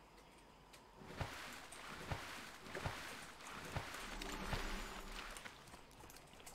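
Water splashes and sloshes with swimming strokes.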